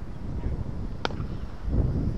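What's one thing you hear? A cricket bat cracks against a ball.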